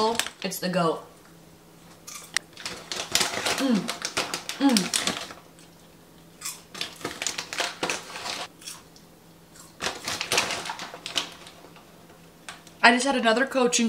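A young woman crunches popcorn while chewing.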